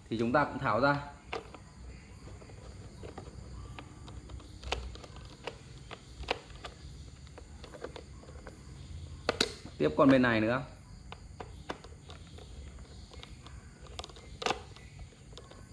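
A screwdriver taps and scrapes against a plastic cover.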